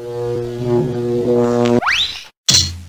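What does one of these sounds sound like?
A cheerful cartoon tune plays.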